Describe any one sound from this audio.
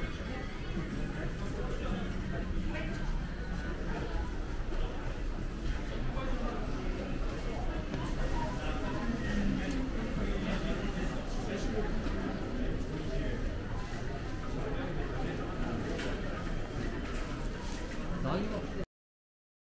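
A crowd murmurs in the background indoors.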